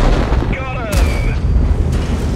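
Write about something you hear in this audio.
A shell strikes armour with a sharp metallic clang.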